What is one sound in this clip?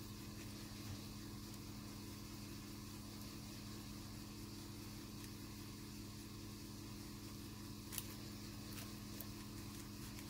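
Fingers rub softly over a sheet of paper.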